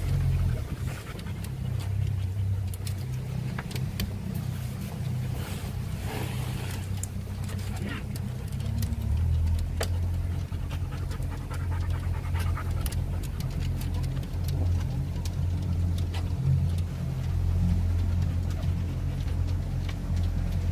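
Water laps softly against a boat's hull.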